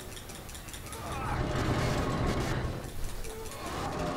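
A heavy metal wheel grinds as it is turned.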